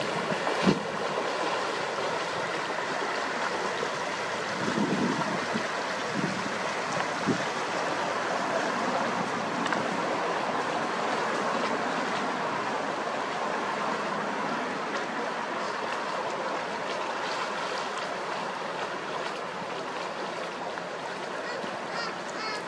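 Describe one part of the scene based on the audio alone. Water laps and splashes steadily against a hull.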